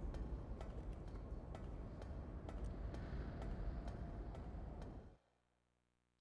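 A figure climbs a metal ladder with clanking steps.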